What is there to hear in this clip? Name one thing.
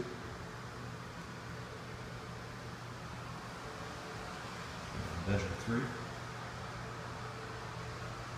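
A ceiling fan whirs steadily.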